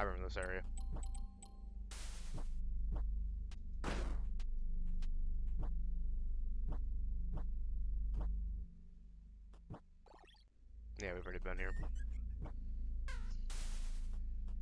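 Game sound effects click and chime quickly.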